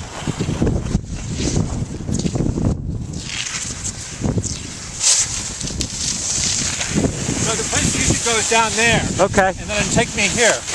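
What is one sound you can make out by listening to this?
Skis scrape and hiss over snow.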